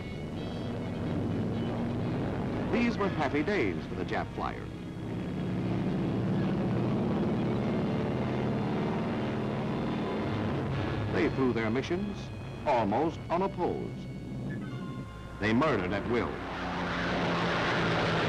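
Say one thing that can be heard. Aircraft propeller engines drone steadily overhead.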